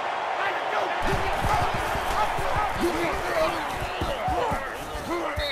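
Football players collide with thudding pads.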